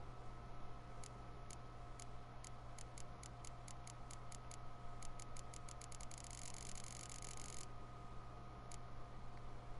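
Short interface clicks tick one after another, speeding up into a quick rattle.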